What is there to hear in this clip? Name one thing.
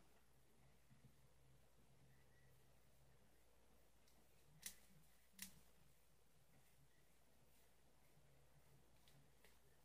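Fingers rustle through curly hair close to the microphone.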